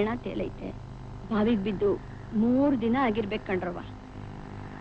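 A woman speaks with feeling, close by.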